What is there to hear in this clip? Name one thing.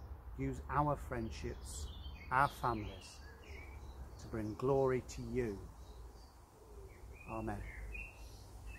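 A middle-aged man speaks calmly and close by, outdoors.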